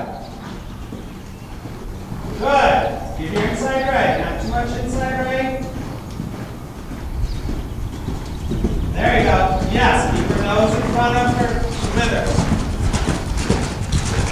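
A horse's hooves thud softly on sand.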